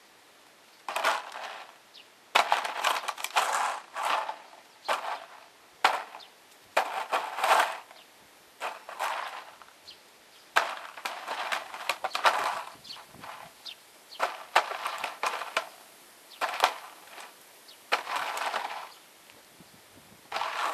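A crow caws harshly and repeatedly close by.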